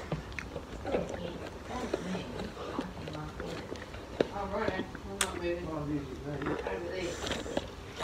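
A young girl slurps a drink through a straw.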